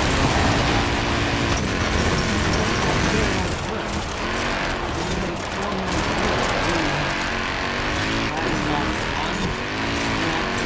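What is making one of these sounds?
Tyres rumble and skid over a muddy dirt track.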